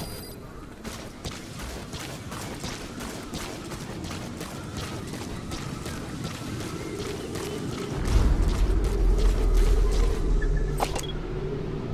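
Footsteps run quickly through dry grass and over rough ground.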